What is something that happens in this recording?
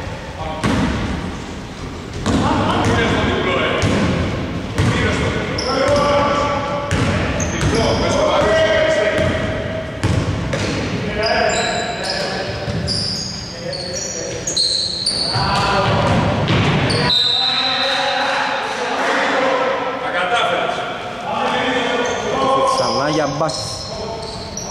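Men shout to each other across an echoing hall.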